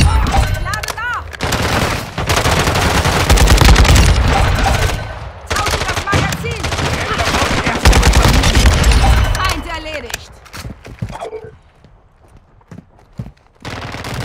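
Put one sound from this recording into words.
A rifle magazine clicks and clacks during a reload.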